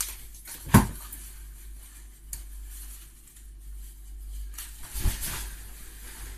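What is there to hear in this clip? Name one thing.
Fabric rustles as a jacket is taken off close by.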